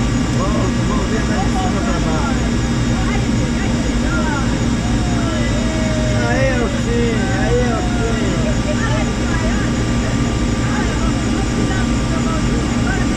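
A helicopter engine roars steadily up close.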